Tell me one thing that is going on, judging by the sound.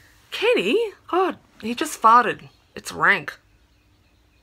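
A woman speaks close up with animation, her voice rising and falling.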